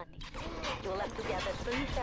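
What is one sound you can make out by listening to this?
A crossbow fires a bolt with a sharp twang.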